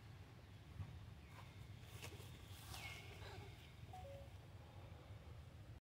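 A monkey scampers across stone.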